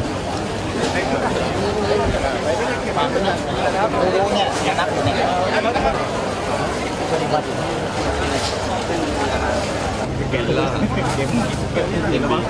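Plastic bags rustle and thud as they are handled.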